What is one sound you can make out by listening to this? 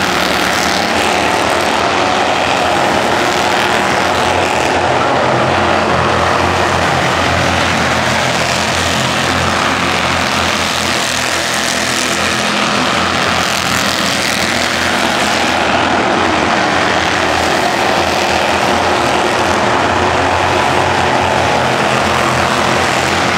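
Race car engines roar loudly as cars speed around a track.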